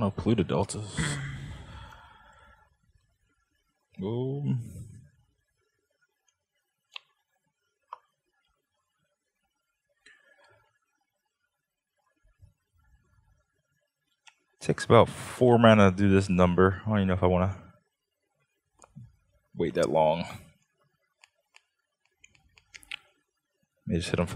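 Playing cards rustle softly as they are shuffled and handled.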